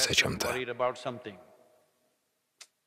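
An elderly man speaks calmly and close into a microphone.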